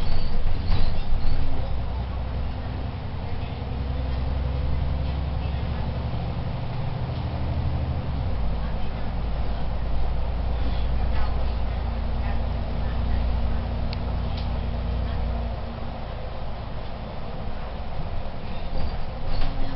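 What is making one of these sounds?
A bus engine hums and drones steadily, shifting pitch as the bus changes gear.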